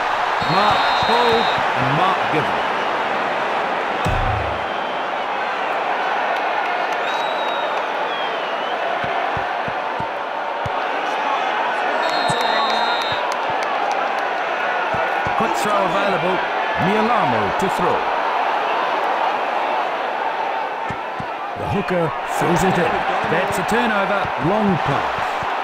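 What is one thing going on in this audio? A large stadium crowd roars and cheers steadily throughout.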